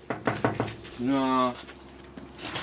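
A middle-aged man calls out loudly nearby.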